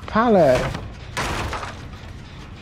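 Wooden planks crack and splinter as they are smashed.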